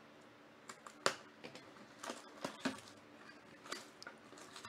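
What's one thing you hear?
A cardboard box lid is pulled open.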